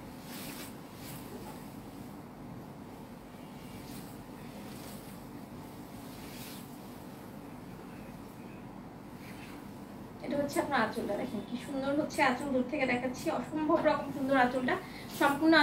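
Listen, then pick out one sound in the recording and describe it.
Fabric rustles as it is shaken out and folded.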